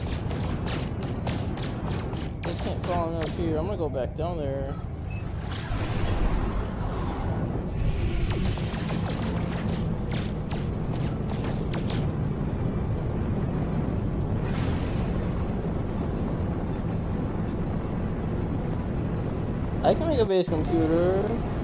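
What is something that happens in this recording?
A spaceship engine rumbles steadily.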